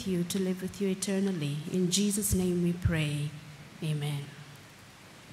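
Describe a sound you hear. A woman sings through a microphone and loudspeakers.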